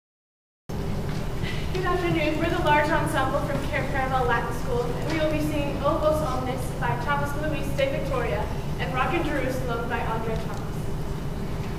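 A choir of young men and women sings together in an echoing hall.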